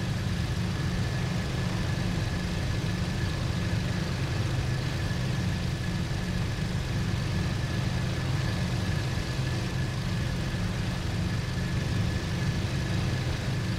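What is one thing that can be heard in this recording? Wind rushes steadily past the plane.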